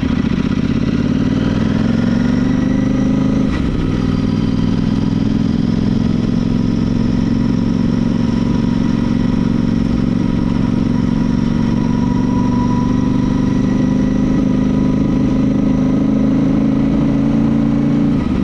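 A motorcycle engine drones loudly and steadily, rising and falling as it rides.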